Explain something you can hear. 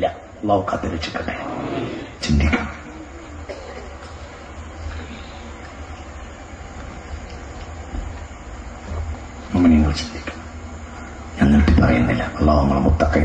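A man speaks forcefully into a microphone over a loudspeaker, with long pauses.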